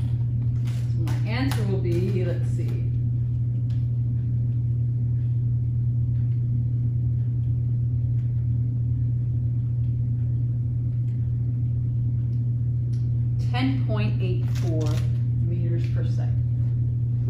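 A young woman speaks calmly in a room.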